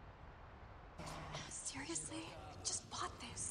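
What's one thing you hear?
A man speaks with a tired, wry tone.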